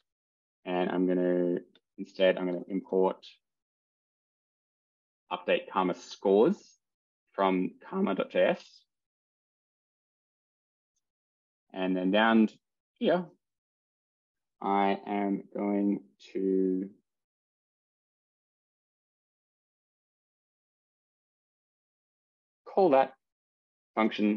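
A man talks calmly into a close microphone, in short phrases with pauses.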